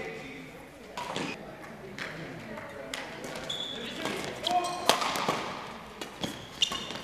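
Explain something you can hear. A shuttlecock is struck sharply by rackets.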